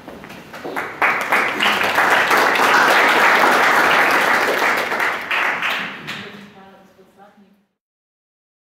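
An audience applauds, then the clapping fades away.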